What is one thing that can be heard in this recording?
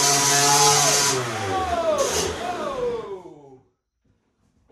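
A small motorbike engine revs loudly and then winds down.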